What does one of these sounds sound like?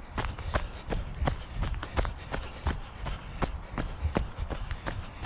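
Footsteps crunch steadily through dry leaves.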